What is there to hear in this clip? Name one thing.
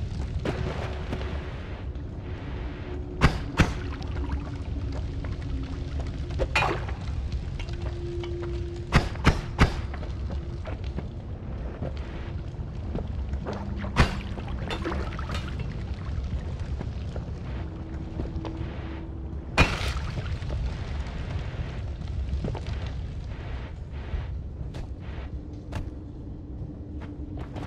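A fire crackles steadily.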